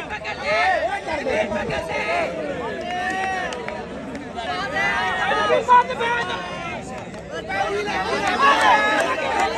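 A crowd of men shouts and cheers nearby.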